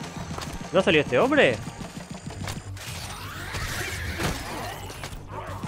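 Blaster shots pop and zap in quick bursts.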